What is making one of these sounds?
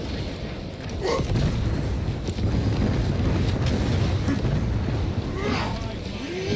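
Creatures screech and shriek.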